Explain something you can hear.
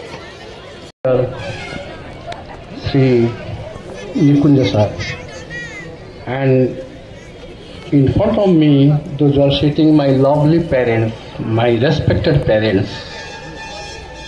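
A man speaks through a microphone over loudspeakers outdoors.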